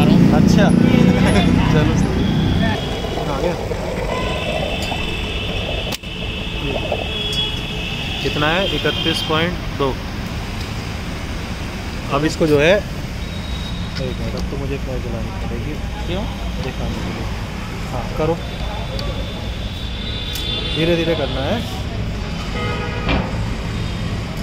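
A fuel pump motor hums steadily.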